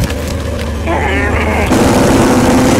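A monster snarls and growls close by.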